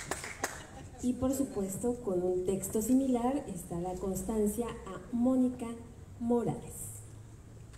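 A woman speaks calmly through a loudspeaker in a large echoing hall.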